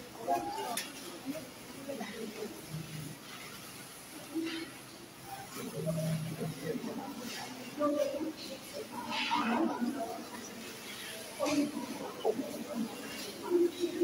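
Children talk and chatter nearby.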